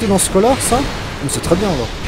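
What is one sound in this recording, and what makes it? Steel clangs as swords strike in a fight.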